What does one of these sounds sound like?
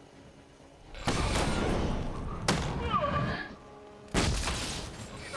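Punches and kicks thud in a brawl.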